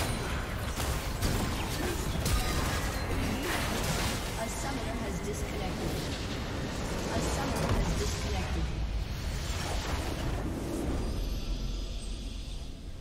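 Game battle effects clash and explode loudly.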